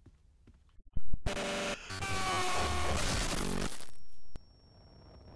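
A monster lets out a loud, harsh shriek.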